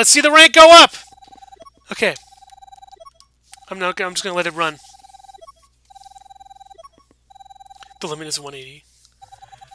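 A video game plays beeping tally tones in bursts.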